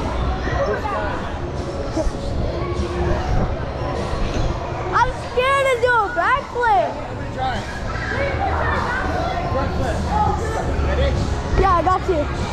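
Many children and adults chatter and shout in a large echoing hall.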